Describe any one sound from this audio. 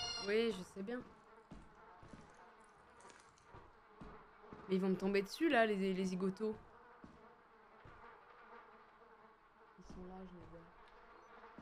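A young boy talks excitedly into a microphone, in short bursts.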